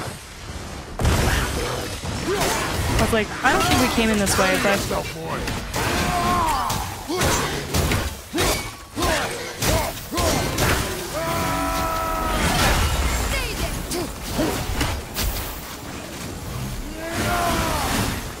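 Weapons clash and thud in a loud fight.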